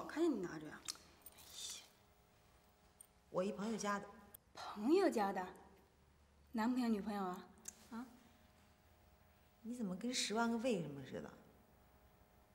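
A young woman talks quietly, close by.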